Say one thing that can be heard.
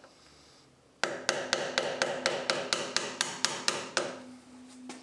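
A screwdriver scrapes and clicks against metal.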